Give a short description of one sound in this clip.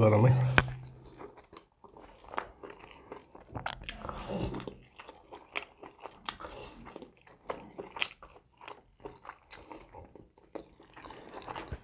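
A man chews and smacks his lips loudly while eating.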